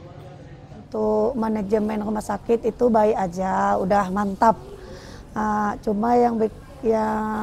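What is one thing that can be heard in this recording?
A woman speaks calmly into a clip-on microphone, close by.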